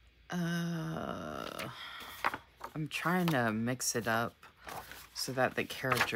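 A paper page flips over.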